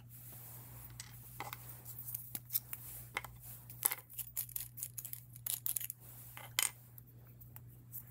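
A pen cap clicks off and on.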